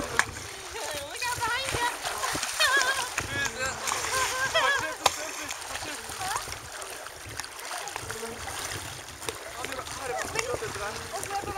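Swimmers call out excitedly at a distance.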